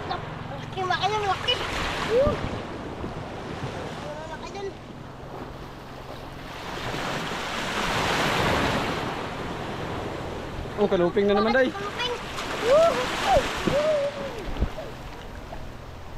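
Small waves wash and lap onto the shore.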